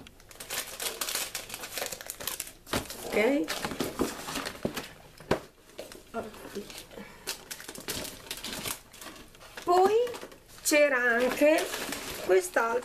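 Cardboard packaging scrapes and thumps as it is moved.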